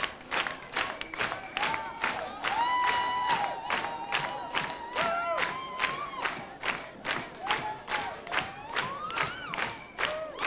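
A crowd cheers and whistles loudly.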